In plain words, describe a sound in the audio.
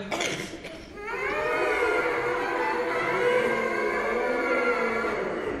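An orchestra plays.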